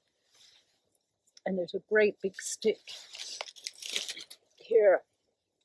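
Dry leaves rustle as a hand rummages through them.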